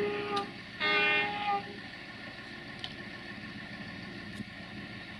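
A diesel locomotive engine rumbles steadily as it approaches.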